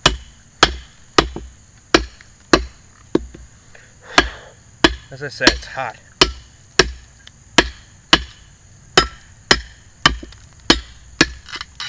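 A mallet knocks sharply on a wooden stick, over and over, outdoors.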